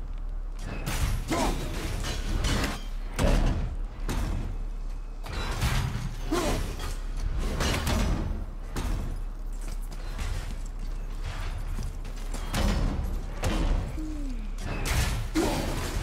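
An axe strikes wood with heavy thuds.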